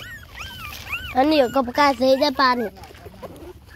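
Puppies whimper and squeal up close.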